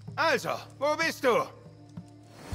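A man speaks sternly and threateningly.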